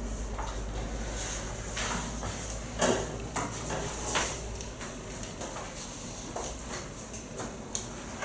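A felt eraser wipes across a chalkboard.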